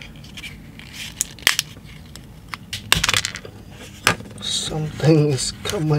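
A plastic casing clicks and snaps open.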